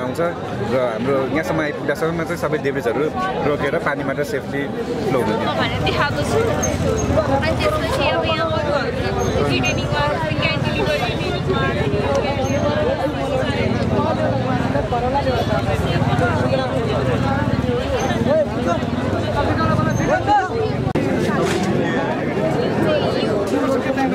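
A young woman explains something with animation, close by.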